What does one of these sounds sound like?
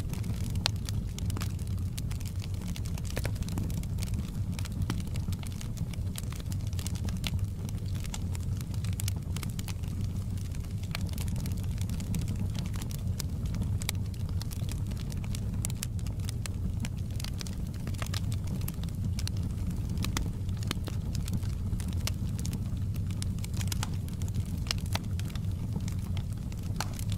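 Burning wood crackles and pops often.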